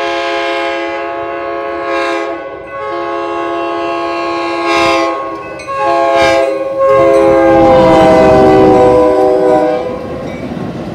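A train horn blares in long loud blasts as the train approaches.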